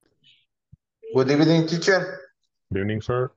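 A young man laughs over an online call.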